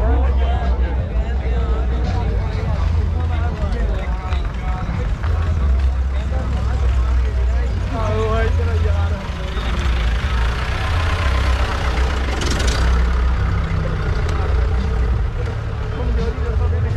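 Men talk loudly nearby in a crowd outdoors.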